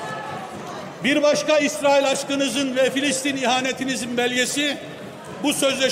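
An elderly man speaks forcefully into a microphone in a large echoing hall.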